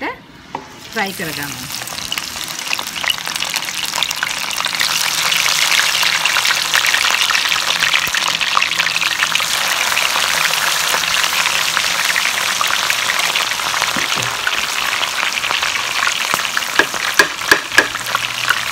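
Hot oil sizzles and crackles loudly as food drops in.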